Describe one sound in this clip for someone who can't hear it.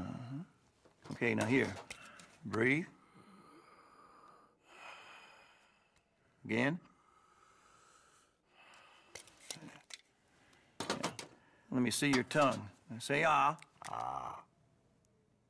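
An elderly man speaks calmly and gently, close by.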